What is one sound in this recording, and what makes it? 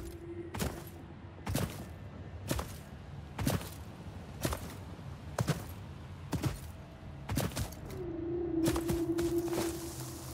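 Footsteps thud at a steady walking pace across grass and soil.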